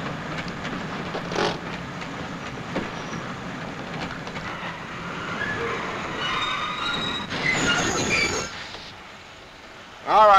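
A man scrapes and scratches at a window pane.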